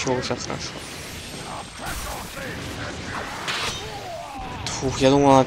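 An energy blast roars and whooshes.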